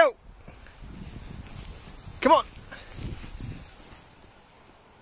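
Footsteps crunch through deep snow close by.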